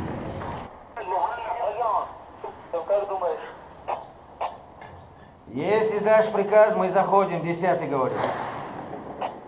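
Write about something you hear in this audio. A man speaks into a handheld radio.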